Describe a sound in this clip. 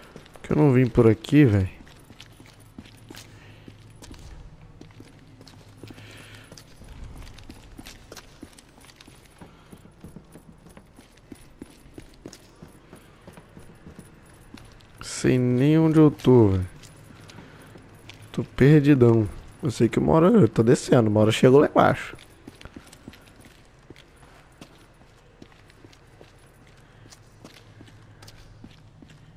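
Footsteps crunch on dirt and gravel.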